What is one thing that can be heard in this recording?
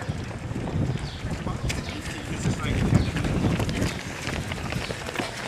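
Many running feet patter and thud on a paved path.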